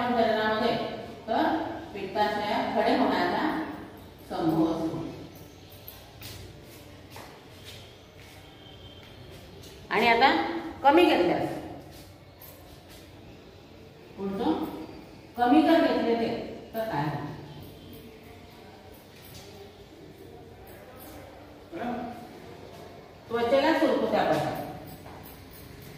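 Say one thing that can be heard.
A middle-aged woman speaks calmly and clearly, pausing often.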